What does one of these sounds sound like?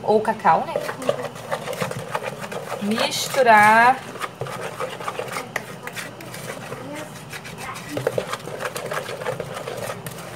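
A spatula scrapes and stirs batter in a bowl.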